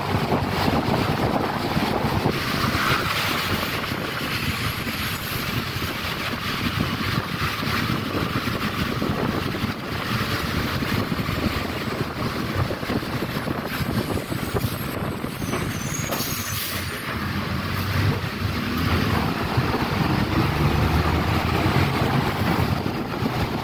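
A bus engine rumbles steadily from inside the bus.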